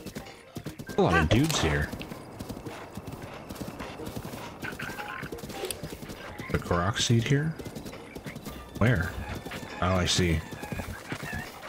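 Hooves gallop on grass.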